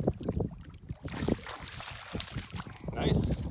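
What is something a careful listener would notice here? Water splashes as a fish is scooped up in a net.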